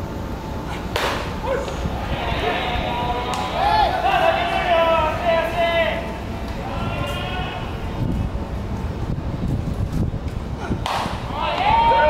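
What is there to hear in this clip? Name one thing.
A baseball pops into a catcher's leather mitt.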